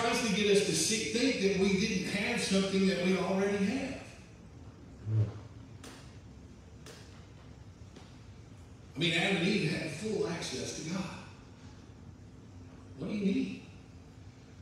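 A man speaks with animation through a microphone, with pauses, in a large echoing room.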